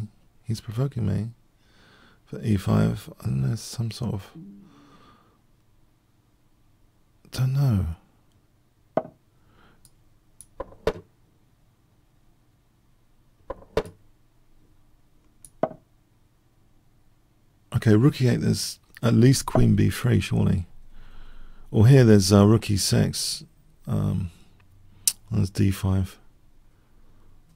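A middle-aged man talks thoughtfully into a close microphone, in bursts with pauses.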